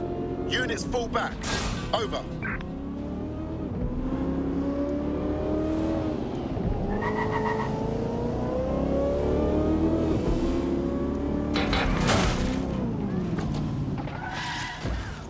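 A car engine revs and hums as the car speeds along.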